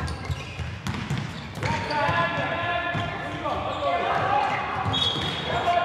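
Sneakers squeak sharply on a hard indoor floor.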